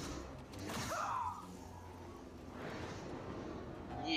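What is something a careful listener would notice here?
Sparks crackle and sizzle.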